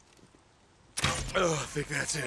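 Rifle shots crack loudly in quick succession.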